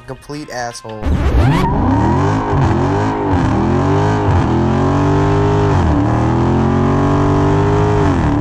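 A powerful car engine roars and revs up and down repeatedly.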